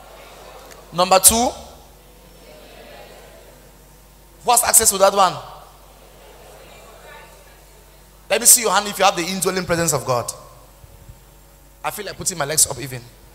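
A young man speaks with animation into a microphone, heard through a loudspeaker in a large echoing hall.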